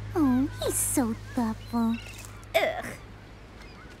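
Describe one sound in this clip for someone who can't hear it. A young woman speaks with animation, her voice rising and falling.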